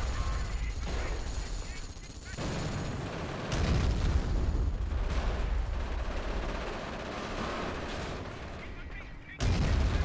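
Gunfire rattles steadily.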